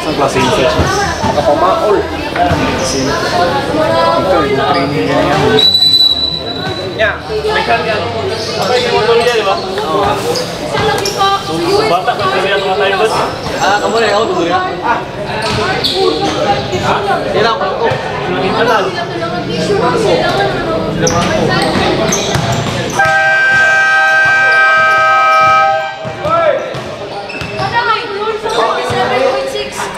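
Voices chatter in a large echoing hall.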